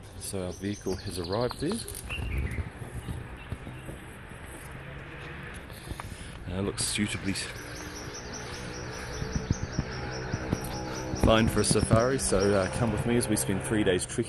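A man talks with animation close to a phone microphone.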